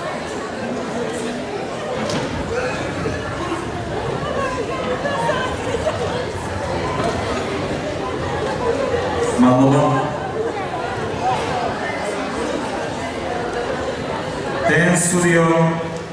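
An audience murmurs and chatters throughout a large hall.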